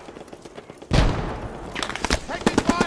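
An explosion booms nearby and rumbles away.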